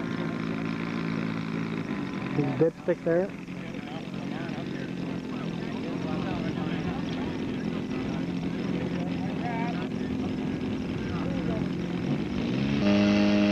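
A small model plane engine buzzes steadily overhead.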